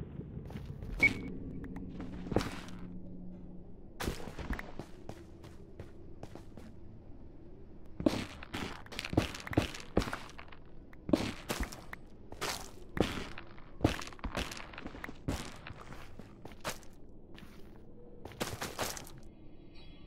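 Footsteps crunch on gritty ground.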